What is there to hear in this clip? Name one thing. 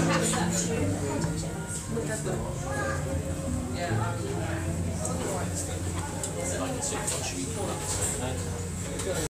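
A crowd of men and women chatter and talk over one another nearby.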